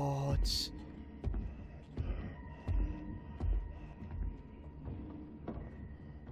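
Small footsteps thump on wooden furniture.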